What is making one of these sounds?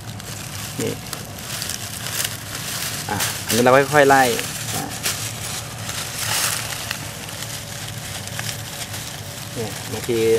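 Dry leaves rustle and crackle as hands move through them.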